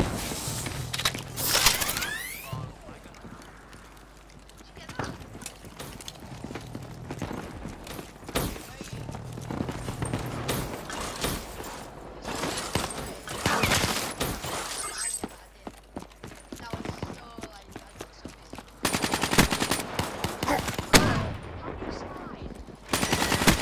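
Guns fire in short bursts.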